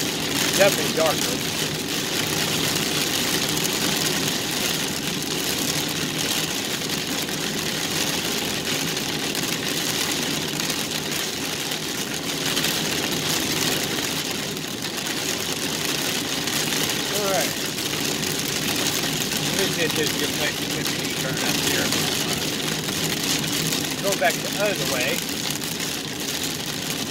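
Heavy rain pours onto a car's windshield.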